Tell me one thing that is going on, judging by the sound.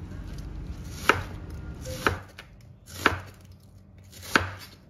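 A knife chops on a wooden cutting board at a slow, even pace.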